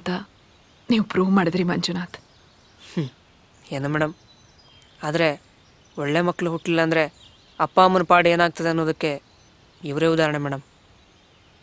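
A young man speaks softly up close.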